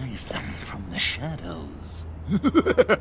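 A man speaks in a sly, amused voice.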